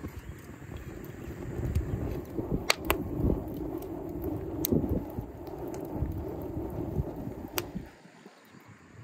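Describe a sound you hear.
A wood fire roars and crackles.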